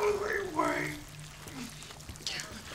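A man speaks in a low, threatening voice.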